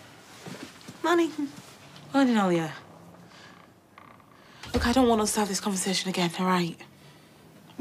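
A woman speaks with a smile up close.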